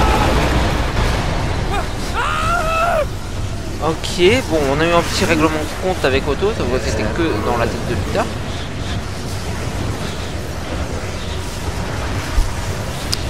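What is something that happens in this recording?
Wind rushes past loudly during a fast fall.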